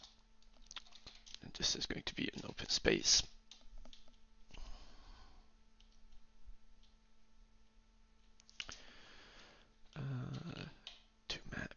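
Keys on a keyboard click as someone types.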